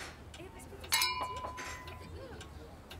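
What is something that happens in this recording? Glasses clink together with a ringing chime.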